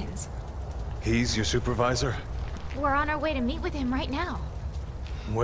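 A young woman speaks urgently.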